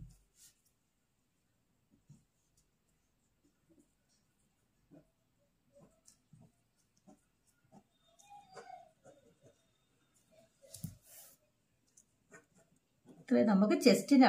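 A pen scratches softly across fabric.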